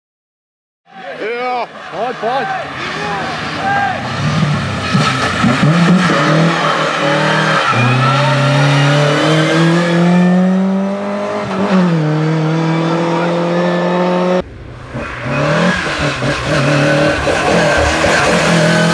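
A rally car engine drops and rises in pitch as the driver shifts gears.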